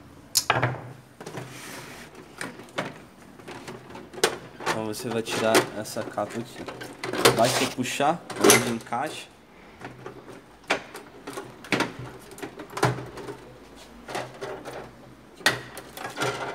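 Hands knock and click against the plastic casing of a printer.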